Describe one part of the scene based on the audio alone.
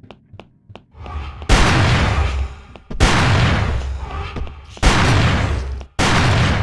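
Blades clash and slash loudly in a fight.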